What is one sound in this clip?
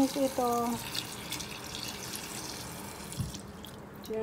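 Tap water runs and splashes into a pot.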